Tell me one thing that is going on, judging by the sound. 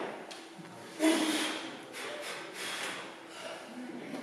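A young man grunts loudly with effort.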